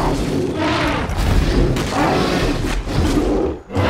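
A mammoth bellows and groans loudly close by.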